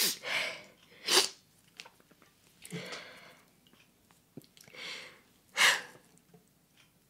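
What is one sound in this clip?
A young woman sniffles and breathes shakily while crying, close to the microphone.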